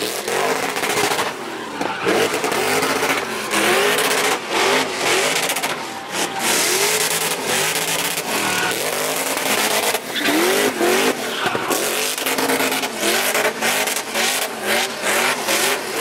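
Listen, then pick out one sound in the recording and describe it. A car engine revs hard, its pitch rising and falling over and over.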